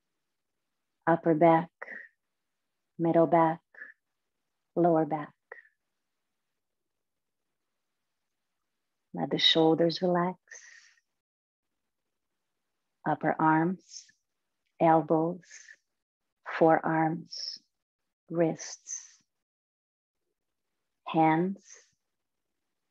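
A young woman speaks calmly and softly in short phrases, close to a microphone.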